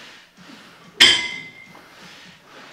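A dumbbell clanks with a short metallic ring.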